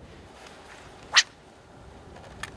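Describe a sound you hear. A fishing rod swishes as a lure is cast.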